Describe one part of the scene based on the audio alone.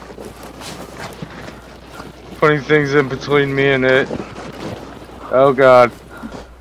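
A loaded wooden sled scrapes and bumps over grassy ground.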